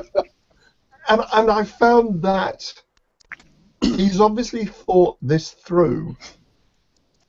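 A middle-aged man speaks animatedly over an online call.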